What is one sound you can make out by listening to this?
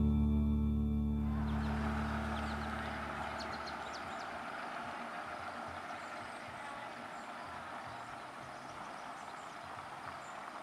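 A car engine rumbles low as a car drives slowly away and fades.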